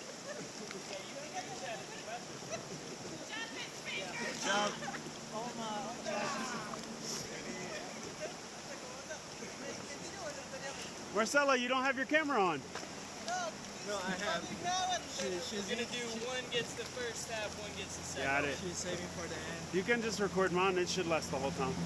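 Water laps and splashes gently against rafts.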